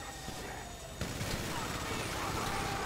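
A gun fires rapidly.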